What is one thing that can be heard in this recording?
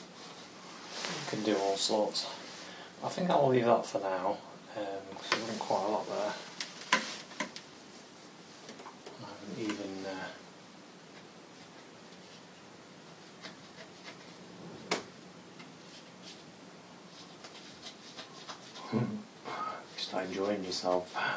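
A man talks calmly and steadily, close by.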